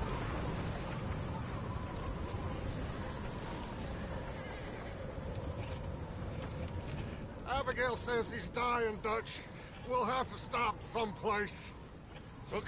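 A wagon rumbles and creaks as it rolls along.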